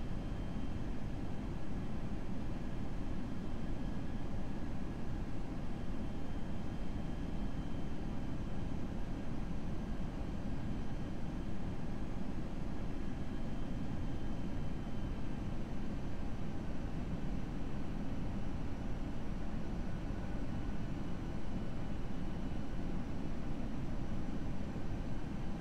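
Jet engines hum steadily with a low roar.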